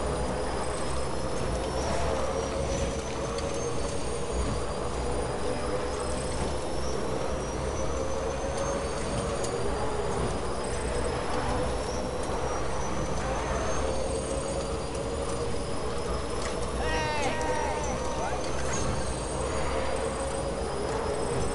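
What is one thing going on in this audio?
A motorbike engine hums steadily as the bike rides along a road.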